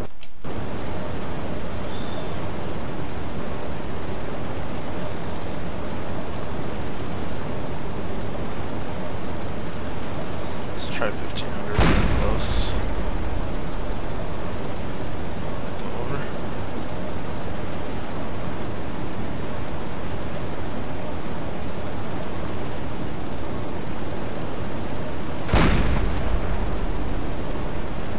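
Wind blows steadily through snow.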